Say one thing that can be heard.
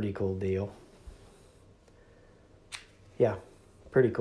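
A plastic battery clicks out of a charger.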